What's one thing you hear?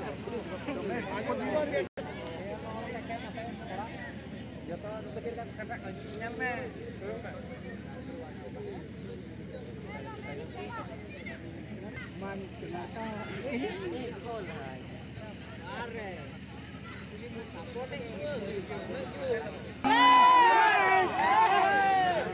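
A crowd of spectators chatters and shouts outdoors at a distance.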